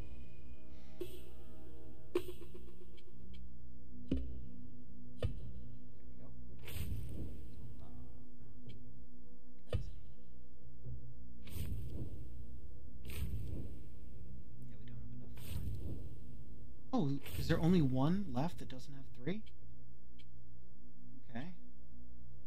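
Soft interface clicks and whooshes sound as menu options change.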